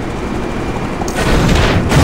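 A bright explosion bursts with a loud whoosh.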